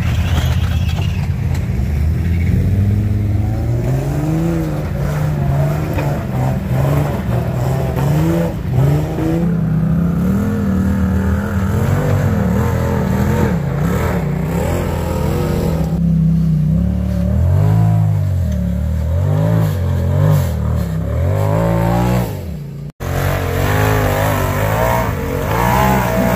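Off-road vehicle engines rev up and down hard, loud and close.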